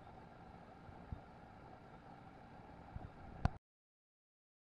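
Water bubbles and hums steadily in a tank.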